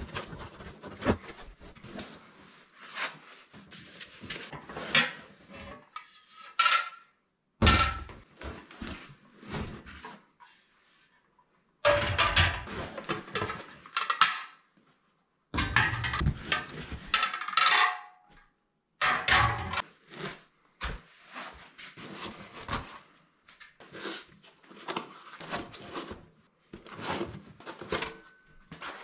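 Hands rustle and slide foam packing inside a cardboard box.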